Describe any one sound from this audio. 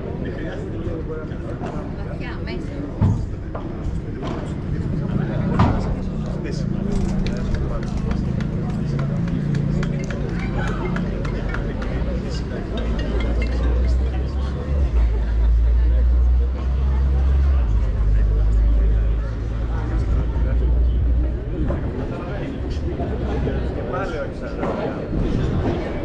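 Padel rackets strike a ball with sharp pops.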